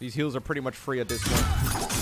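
A sword clashes in a fiery burst of sparks.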